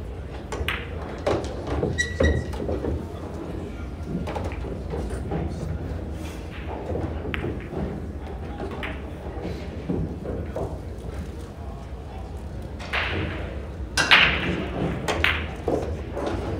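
Pool balls clack together and knock against the table's cushions.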